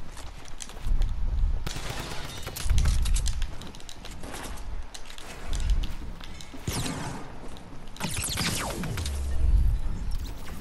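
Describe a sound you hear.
Gunshots crack and strike a wooden wall in quick bursts.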